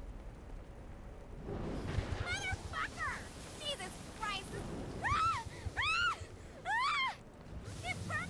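Lava bubbles and crackles close by.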